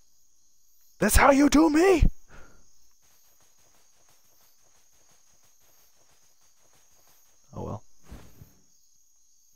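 A young man speaks animatedly close to a microphone.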